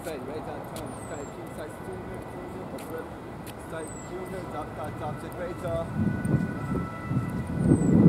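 Footsteps scuff on the court as a man approaches.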